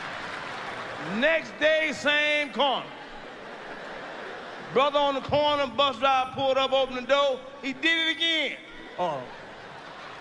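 A man speaks calmly into a microphone, close up.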